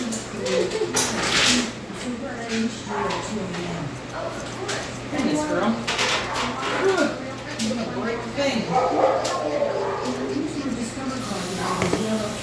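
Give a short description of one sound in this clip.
Scissors snip through fur with quick metallic clicks.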